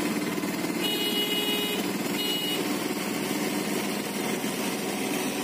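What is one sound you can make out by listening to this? A vehicle engine hums steadily as it drives along a road.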